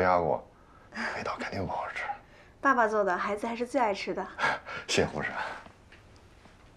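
A young woman answers calmly through a face mask.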